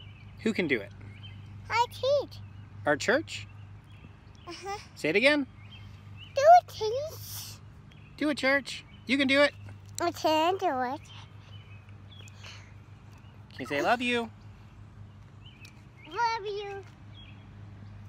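A little girl talks and squeals in a high voice close by.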